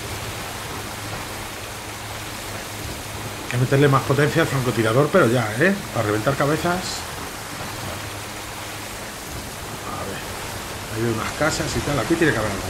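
Water splashes and sprays against a moving boat.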